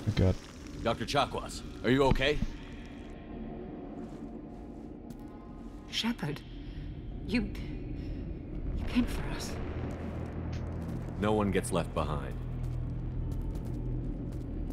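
A man speaks into a microphone close by.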